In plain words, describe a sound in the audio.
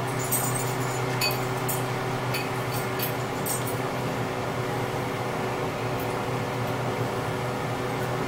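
Milk pours from a jug into a glass.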